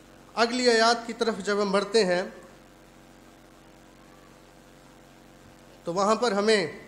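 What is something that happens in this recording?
A man reads out calmly into a microphone.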